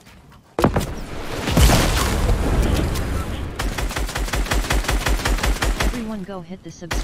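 Gunfire crackles in rapid bursts in a video game.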